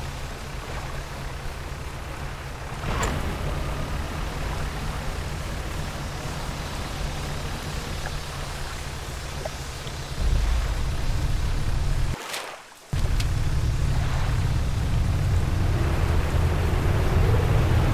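A boat engine hums low and steadily.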